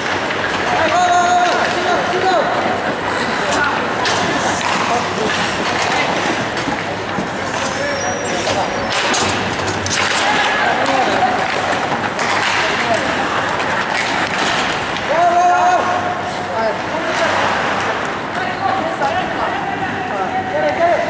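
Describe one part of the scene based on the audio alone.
Young players shout to each other across the rink.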